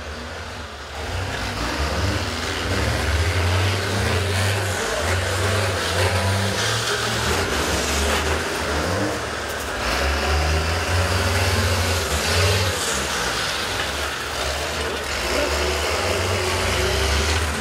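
Tyres churn through wet mud.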